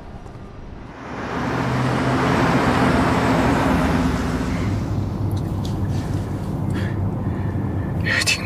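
A car drives along a road with a steady rumble.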